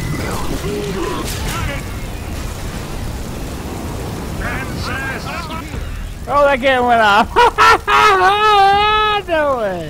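Flames roar and crackle from a burning fire.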